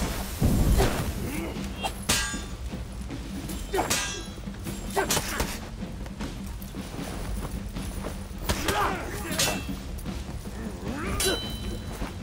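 Metal blades clash and ring sharply.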